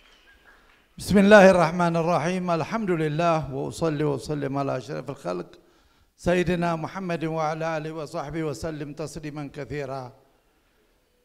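An elderly man speaks calmly through a microphone and loudspeakers in a large echoing hall.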